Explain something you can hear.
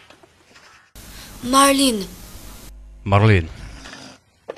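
A man groans and gasps in pain.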